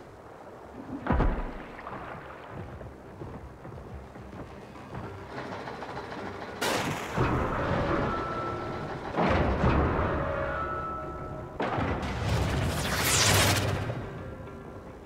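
Slimy liquid bursts with a loud, wet splatter.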